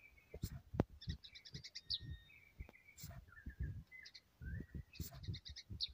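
A songbird sings close by in quick, chirping phrases and whistles.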